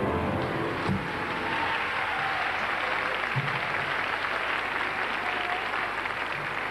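Children in the audience cheer and shout.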